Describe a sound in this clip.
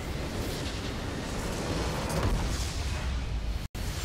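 A large structure explodes with a deep rumbling boom.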